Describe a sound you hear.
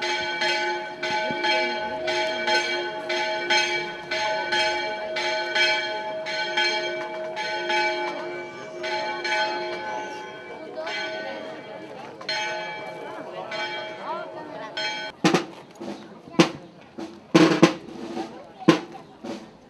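A procession's footsteps shuffle slowly on pavement.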